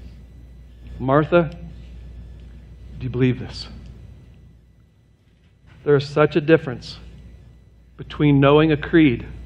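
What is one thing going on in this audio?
A middle-aged man speaks with emphasis through a microphone, pausing between phrases.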